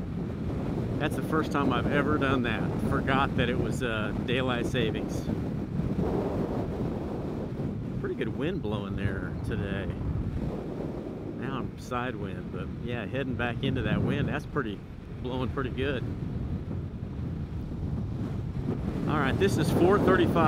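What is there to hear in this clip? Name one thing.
A man talks casually close to a microphone.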